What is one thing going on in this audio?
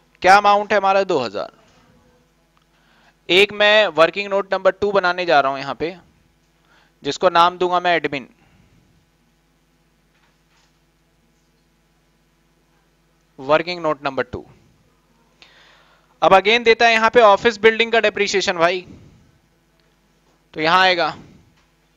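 A man speaks calmly and clearly into a close microphone, in short phrases with pauses.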